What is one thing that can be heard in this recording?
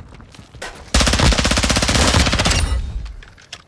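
Rapid gunfire rattles in a loud burst.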